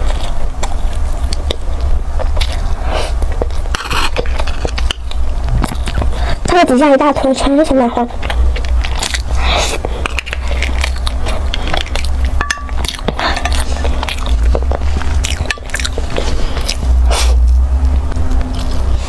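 A young woman chews food with wet, smacking sounds close to a microphone.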